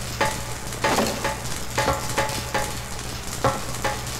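Feet clank on the rungs of a metal ladder.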